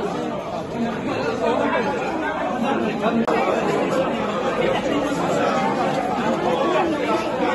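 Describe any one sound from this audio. A crowd of men and women talk over one another in a busy, echoing room.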